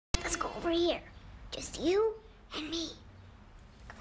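A young boy speaks calmly and close by.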